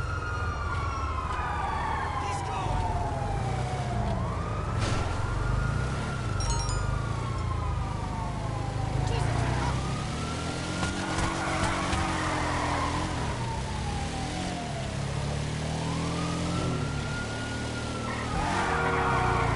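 A buggy's engine revs up and down as it drives.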